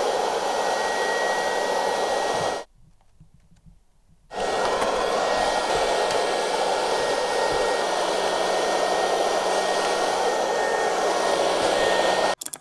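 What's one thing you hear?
A small electric fan whirs steadily with a thin, high whine.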